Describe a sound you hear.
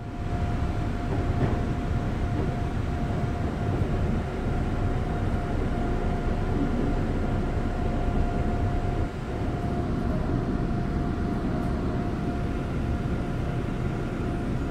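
A steady electric hum drones inside a train carriage.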